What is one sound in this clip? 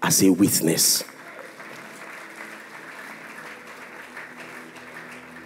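An audience cheers and claps.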